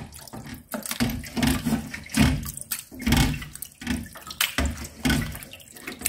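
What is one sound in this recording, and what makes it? Wet meat plops into a plastic strainer.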